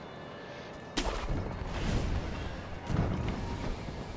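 A grappling rope whips out and pulls taut with a rushing swoosh.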